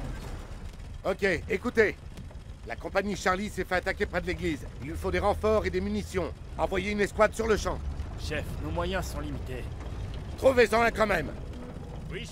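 A second man gives orders in a firm voice.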